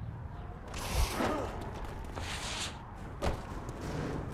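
A heavy body lands with a thud.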